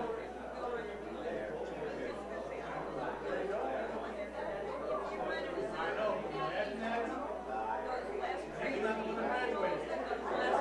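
A crowd of elderly men and women chatter all at once in a room with some echo.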